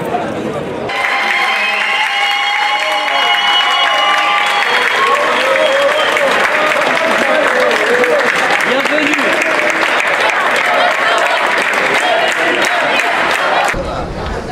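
A crowd claps hands rapidly.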